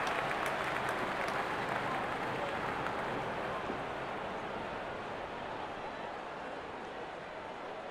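A large stadium crowd murmurs and cheers steadily, slowly growing quieter.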